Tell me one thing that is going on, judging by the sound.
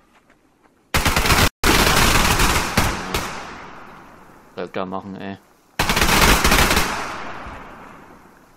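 Gunfire rattles in loud, rapid bursts.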